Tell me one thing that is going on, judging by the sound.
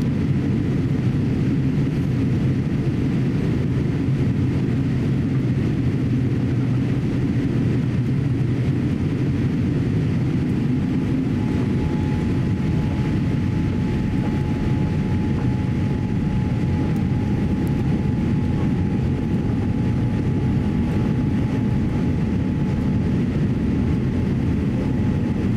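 An airplane's engines roar with a steady low drone.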